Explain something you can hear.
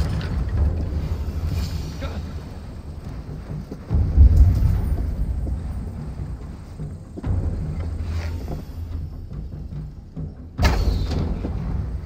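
Fire crackles and roars nearby.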